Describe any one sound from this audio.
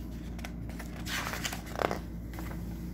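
A page of a book turns with a papery rustle.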